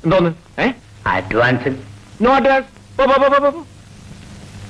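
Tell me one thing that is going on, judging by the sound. A man speaks with animation, pleading.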